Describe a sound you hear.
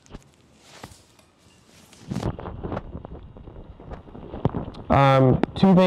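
Fabric rustles and flaps as a man handles clothing.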